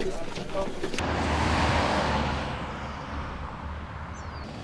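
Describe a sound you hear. A vehicle passes close by.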